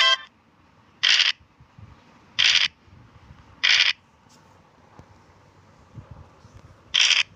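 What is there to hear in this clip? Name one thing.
A die rattles briefly as it is rolled, several times.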